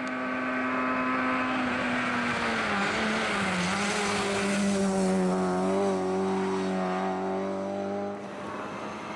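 A rally car engine revs hard and shifts gears as it speeds past.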